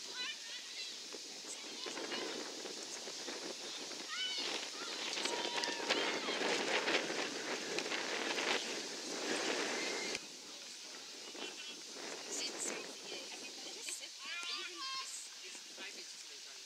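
Young women shout and call to each other across an open field.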